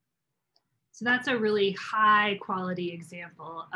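A woman speaks calmly into a microphone, heard as if over an online call.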